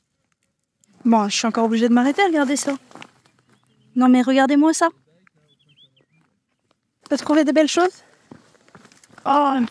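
A young woman speaks close by with animation.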